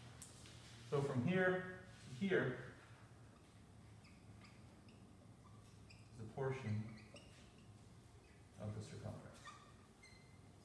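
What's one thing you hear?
A man speaks calmly, as if explaining.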